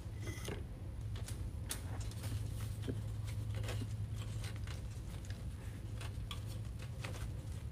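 A wooden sign taps lightly against leaves and a metal rim.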